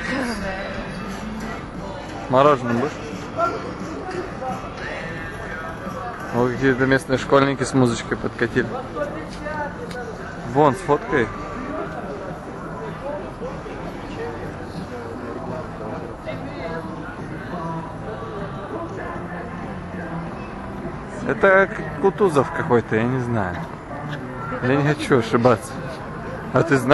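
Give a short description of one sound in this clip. A busy street murmurs with distant voices and footsteps outdoors.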